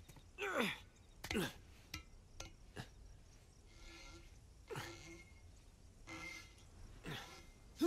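Hands grab and knock against metal bars.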